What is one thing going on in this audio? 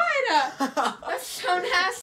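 A teenage boy laughs loudly.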